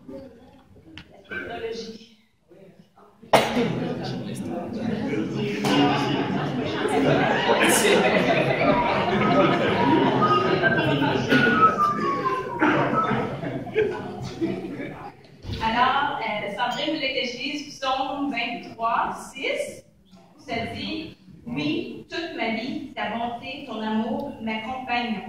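A young woman speaks into a microphone, heard through a loudspeaker in an echoing room.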